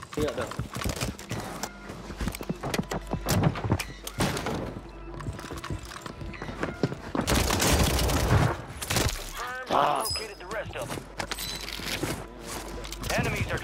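Footsteps patter quickly on hard floors.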